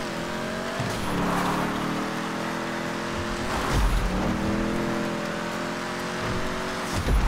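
Tyres hiss and crunch over snow.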